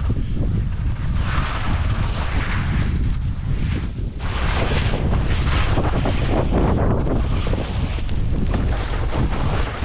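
Skis scrape and hiss over packed snow in bursts.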